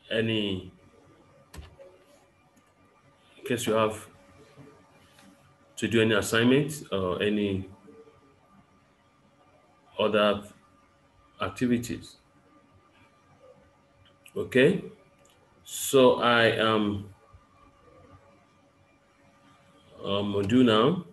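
A man speaks calmly in short bursts, close to a microphone, as if on an online call.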